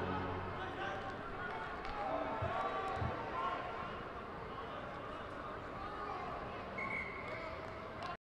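Young men talk and shout together in a close huddle outdoors.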